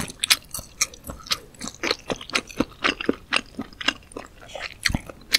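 A woman chews soft food with wet, sticky smacking sounds very close to a microphone.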